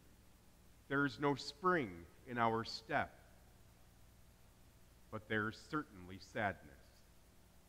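A man speaks calmly into a microphone in a reverberant hall.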